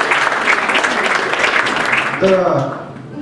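An audience applauds in a hall.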